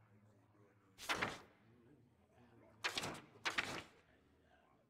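Paper pages swish and rustle as they are flipped over.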